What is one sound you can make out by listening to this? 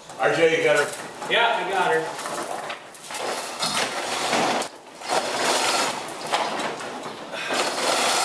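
Chains rattle as a man pulls on them.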